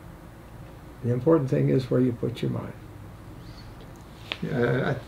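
An elderly man reads aloud calmly, close by.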